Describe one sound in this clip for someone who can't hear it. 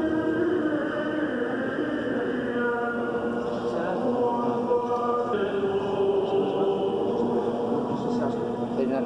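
A man chants steadily in a reverberant hall.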